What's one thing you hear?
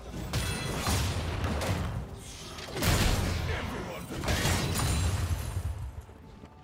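Magic blasts and sword hits crackle and thump in a fast fight.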